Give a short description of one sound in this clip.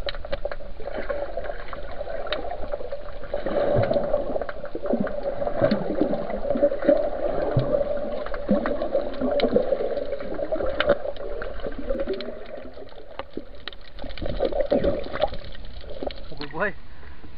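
Water rumbles and bubbles, heard from underwater.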